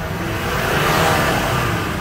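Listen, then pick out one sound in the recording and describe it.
A motorcycle engine hums past.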